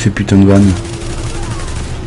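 Gunfire rattles in short bursts.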